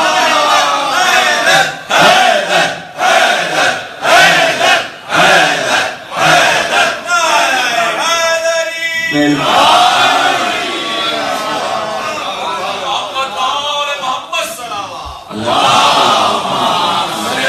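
A man speaks with animation through a microphone, heard over loudspeakers in an echoing hall.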